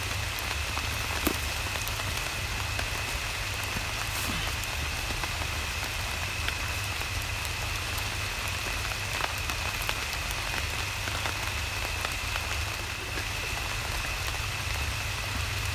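A small campfire crackles.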